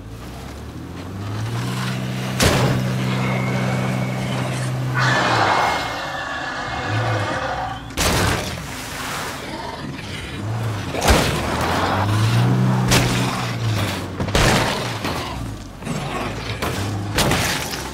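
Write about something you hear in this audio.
A car engine hums and revs as it drives.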